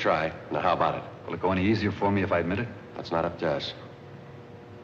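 A second man answers in a firm, level voice.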